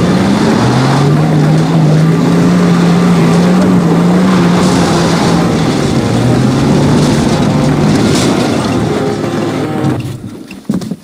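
A car engine drones steadily and rises and falls in pitch as it drives.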